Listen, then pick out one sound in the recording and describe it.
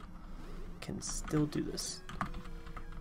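Short electronic game sound effects chirp.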